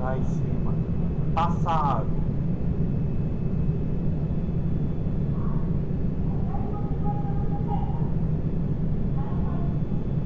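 Jet engines rumble steadily in a cockpit.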